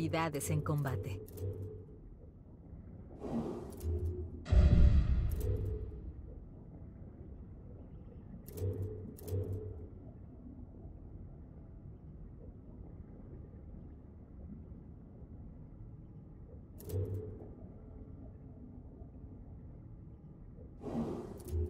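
Short menu clicks and chimes sound as a selection moves.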